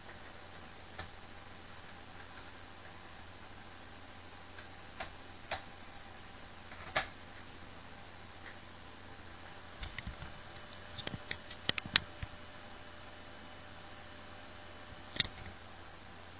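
Plastic clicks and knocks as a disc is handled and placed into a console.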